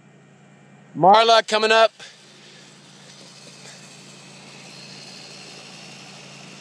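Bicycles whir past close by on a road.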